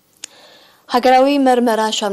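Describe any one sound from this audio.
A young woman reads out calmly and clearly into a microphone.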